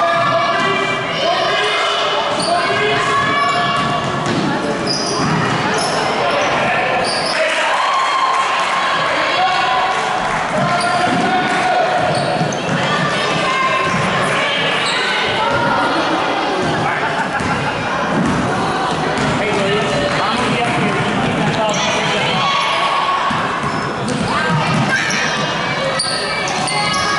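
Spectators cheer and shout throughout a large echoing gym.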